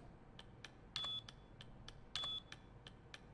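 Keypad buttons beep electronically.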